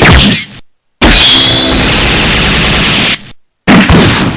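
A bright energy blast bursts with a loud whoosh.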